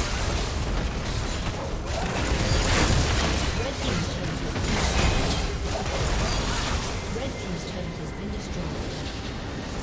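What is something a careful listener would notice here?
Game spell effects and attacks crash and clash loudly.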